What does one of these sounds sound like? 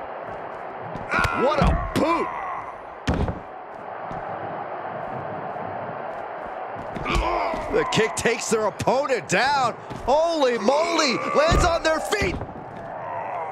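Punches and body slams thud heavily in a wrestling game.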